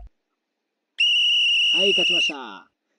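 A steady electronic tone rings out and then cuts off.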